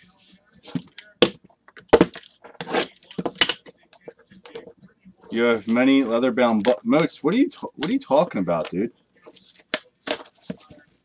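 Cardboard boxes knock and tap on a table.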